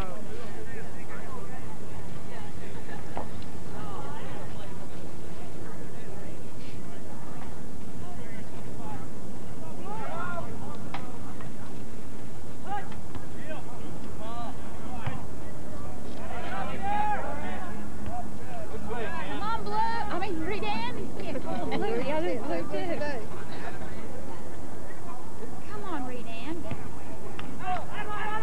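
A crowd of young people chatters and calls out across an open field.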